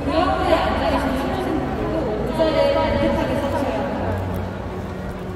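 A marching band plays loudly in a huge open stadium.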